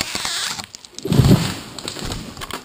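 A tree crashes to the ground.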